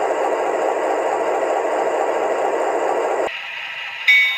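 A small speaker plays a loud diesel engine rumble.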